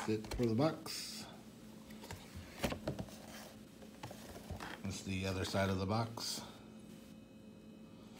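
A cardboard box is handled and opened.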